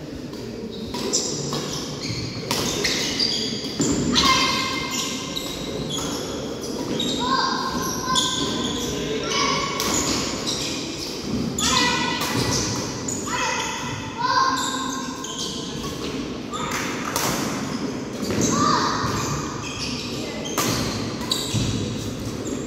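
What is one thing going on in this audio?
Rackets strike a shuttlecock back and forth in an echoing hall.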